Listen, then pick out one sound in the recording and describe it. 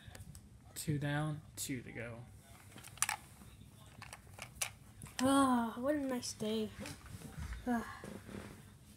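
A boy talks excitedly in a high, playful voice close by.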